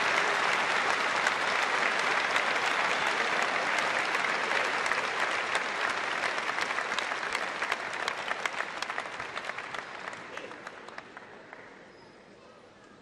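A large crowd applauds and cheers in a big echoing hall, then the applause slowly fades.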